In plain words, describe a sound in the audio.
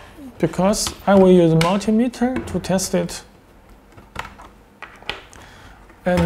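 Small plastic connectors click and snap as they are pushed in and pulled out.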